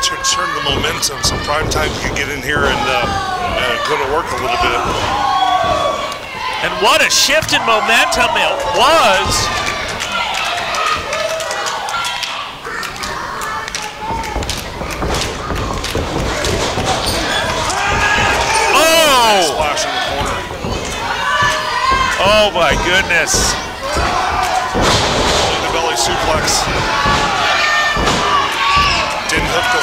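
A crowd cheers and shouts in an echoing hall.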